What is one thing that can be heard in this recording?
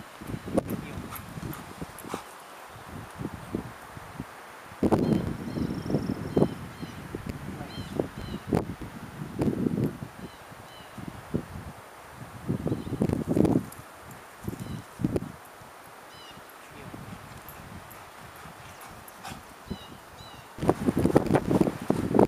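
A man nearby calls out short commands to a dog.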